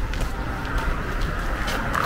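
Footsteps crunch on snow nearby.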